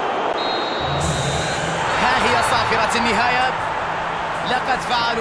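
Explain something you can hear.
A large crowd cheers loudly after a goal.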